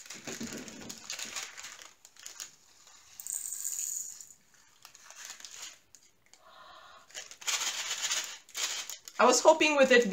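Plastic crinkles and rustles as hands handle a small bag.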